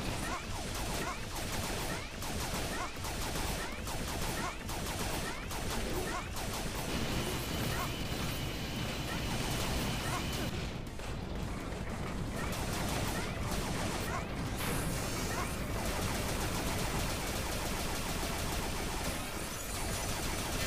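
Rapid electronic blaster shots zap again and again.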